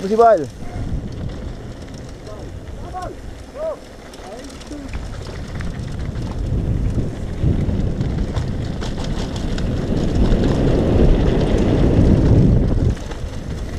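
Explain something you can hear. Bicycle tyres crunch and rattle over a gravel trail.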